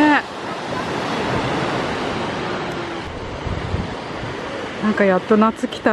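Waves wash steadily onto a beach outdoors.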